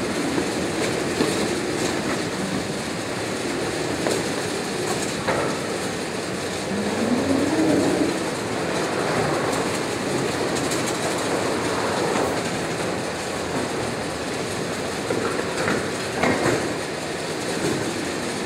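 Cardboard boxes rumble steadily along a roller conveyor.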